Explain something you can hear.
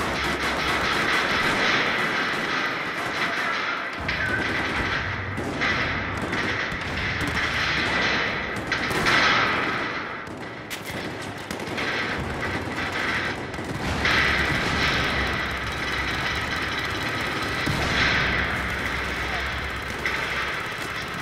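Rapid gunfire bursts and echoes throughout.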